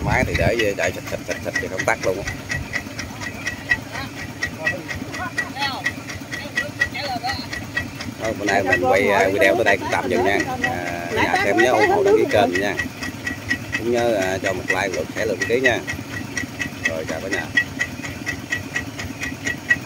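A small engine putters steadily nearby.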